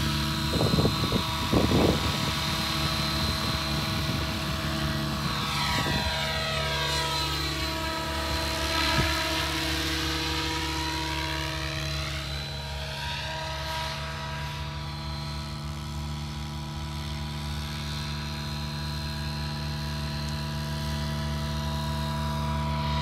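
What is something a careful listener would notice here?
A model helicopter's rotor whines steadily and sweeps past overhead, its pitch falling as it passes.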